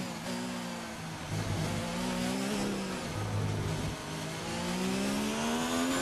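A racing car engine screams, its pitch rising with each gear and dropping at each shift.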